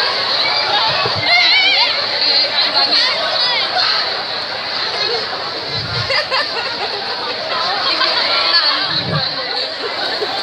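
A crowd of people chatters and calls out in the open air.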